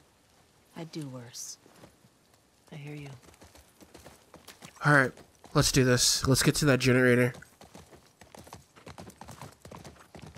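A horse's hooves clop slowly on the ground.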